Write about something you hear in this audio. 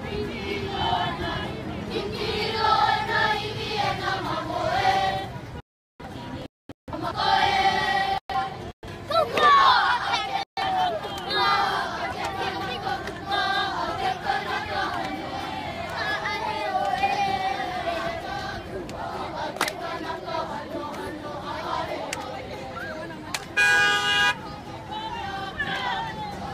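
A crowd of children and adults sings together outdoors.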